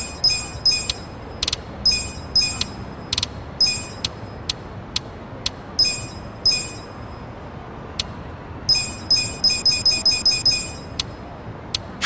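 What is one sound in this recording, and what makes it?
Short electronic menu beeps chime in quick succession.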